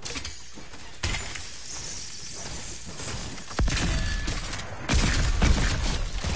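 A rifle fires in bursts in a video game.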